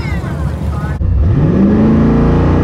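A car engine revs hard and roars from close by.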